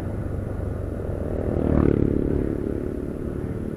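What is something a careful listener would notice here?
A motorized tricycle rumbles past close by.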